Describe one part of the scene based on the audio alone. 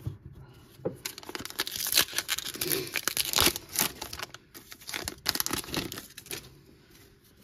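A foil wrapper crinkles and tears as it is pulled open.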